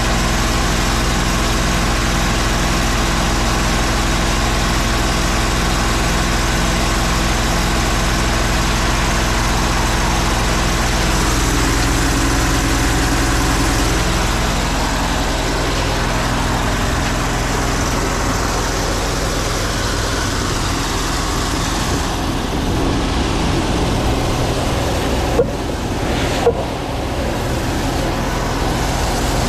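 A motor hums and throbs steadily nearby.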